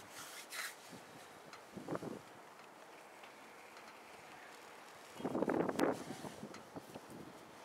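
A brush scrapes and dabs on a hard surface.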